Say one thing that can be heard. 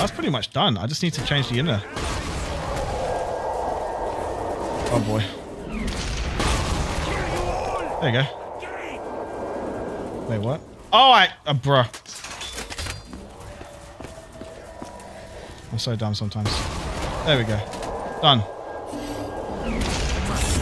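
Game weapons fire with sharp blasts.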